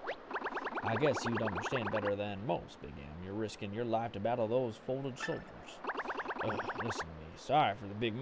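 Quick blippy text beeps chatter from a game.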